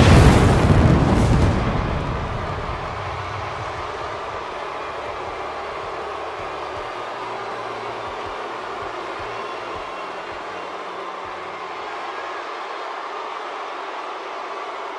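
A large arena crowd cheers.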